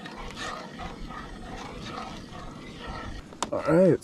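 A spoon stirs and scrapes in a metal pot.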